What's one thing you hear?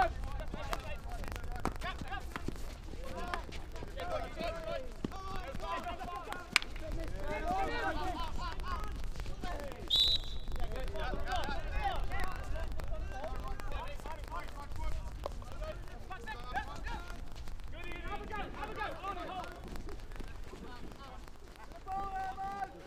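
Hockey sticks knock against a ball with sharp clacks.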